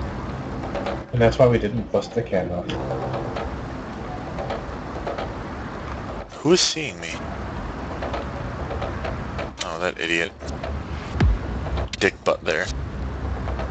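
A man talks into a headset microphone in short bursts.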